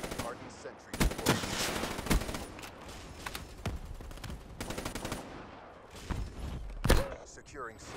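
Guns fire in sharp, loud shots.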